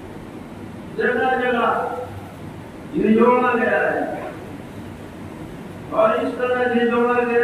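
An elderly man speaks slowly and calmly into a microphone, heard through a loudspeaker in a room.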